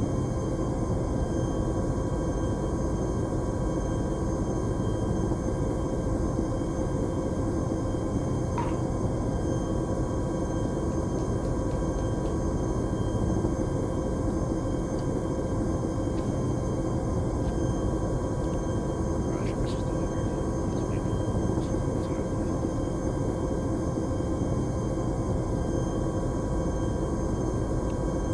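A helicopter's engine and rotors drone steadily from inside the cabin.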